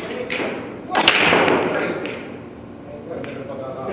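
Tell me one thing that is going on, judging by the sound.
Billiard balls clack together.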